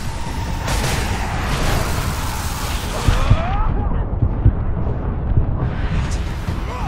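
Bursts of explosions crackle and boom.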